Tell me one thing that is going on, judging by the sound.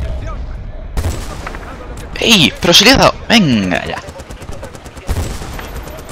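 A sniper rifle fires loud single shots.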